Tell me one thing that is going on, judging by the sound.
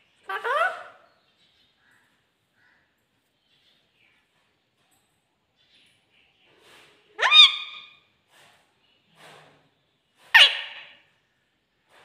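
A parrot squawks loudly in short, shrill calls, with quiet pauses between them.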